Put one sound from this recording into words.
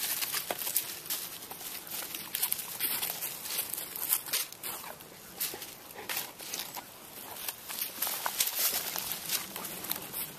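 Dogs' paws rustle and crunch through dry leaves.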